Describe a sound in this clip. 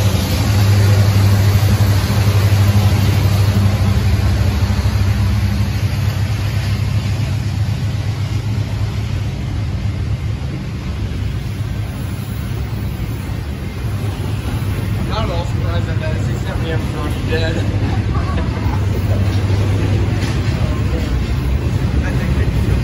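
A long freight train rumbles and clatters steadily past on the rails.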